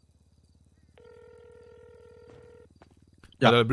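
A phone's ringing tone sounds steadily, then stops.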